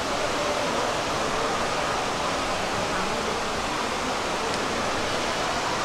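A crowd of visitors murmurs.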